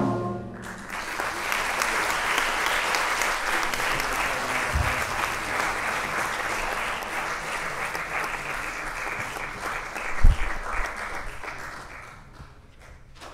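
An audience applauds loudly in a large hall and the applause dies away.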